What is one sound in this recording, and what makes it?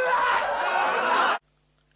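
A young woman exclaims in surprise close to a microphone.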